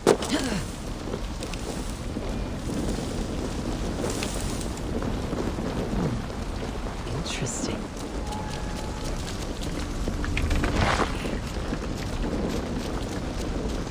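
Footsteps rustle through brush and then tread on stone.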